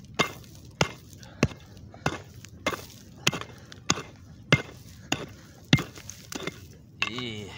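A shovel chops into dry soil with regular, sharp thuds.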